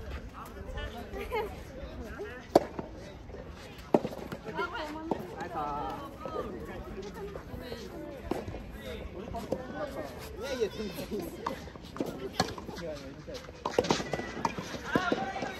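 Young women chat and laugh close by, outdoors.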